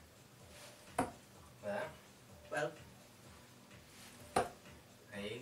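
Darts thud into a dartboard.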